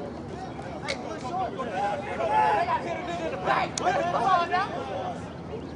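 Young men shout and cheer nearby outdoors.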